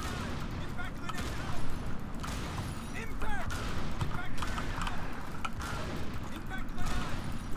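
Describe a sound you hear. Grenades explode with deep, rumbling booms, one after another.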